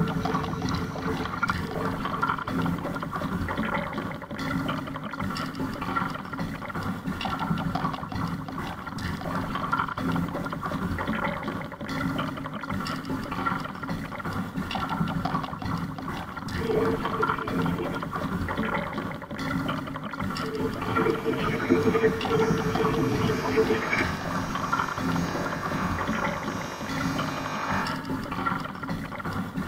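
Water laps and splashes against a kayak's hull.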